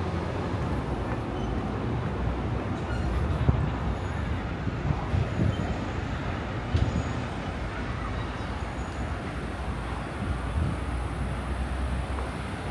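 Wind blows and rumbles across the microphone outdoors.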